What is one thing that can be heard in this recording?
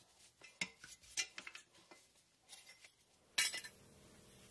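Metal parts clink and scrape against each other.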